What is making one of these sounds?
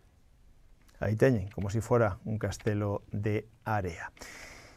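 A middle-aged man speaks calmly and clearly into a microphone.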